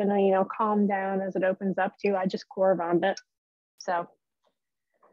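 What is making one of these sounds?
A young woman talks with animation through an online call.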